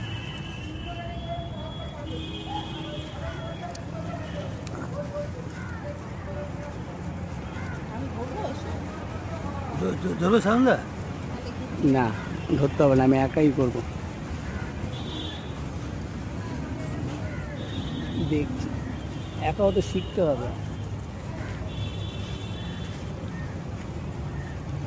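A plastic bag crinkles as hands wrap it around a branch.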